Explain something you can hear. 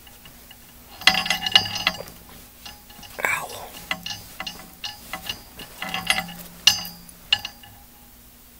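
A young man talks casually close to the microphone.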